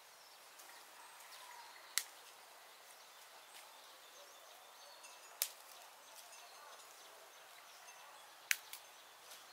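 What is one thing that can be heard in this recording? Leaves rustle softly as weeds are pulled from the soil.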